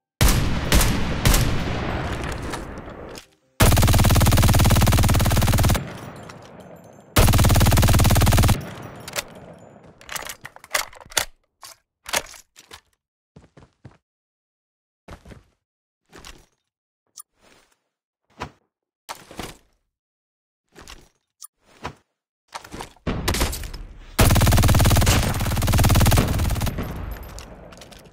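Rapid gunshots crack loudly and echo.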